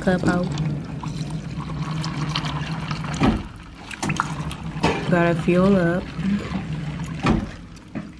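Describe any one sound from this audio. Water pours from a dispenser into a foam cup.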